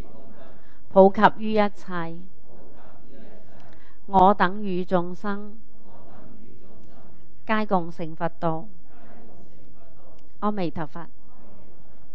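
An elderly man chants in short, drawn-out phrases through a microphone, with pauses between them.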